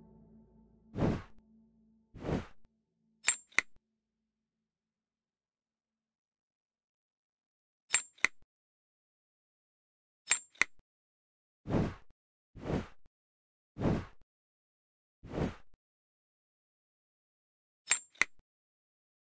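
Game pieces click and chime as they swap places.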